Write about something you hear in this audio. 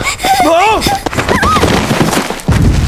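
A young man cries out in alarm.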